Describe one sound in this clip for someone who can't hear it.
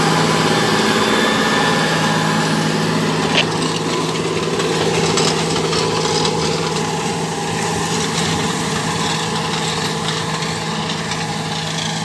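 A plough scrapes and rattles through dry soil.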